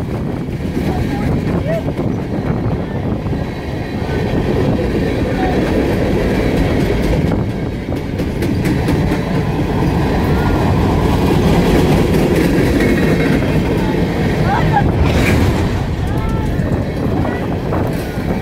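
Young girls talk and call out excitedly nearby, outdoors.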